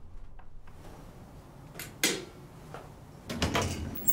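A button clicks as it is pressed.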